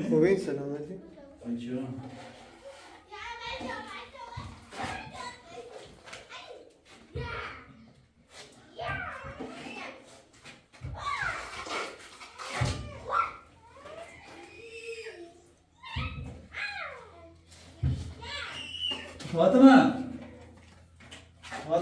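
A trowel scrapes wet plaster across a wall.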